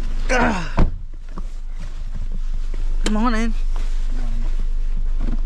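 A young man speaks close by in short bursts.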